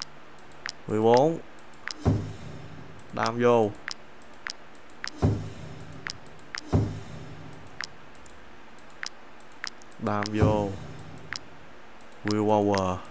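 Short clicks tick as menu buttons are pressed.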